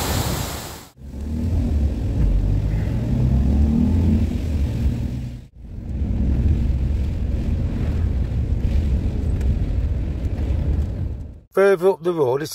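Tyres hiss on a wet road, heard from inside a moving vehicle.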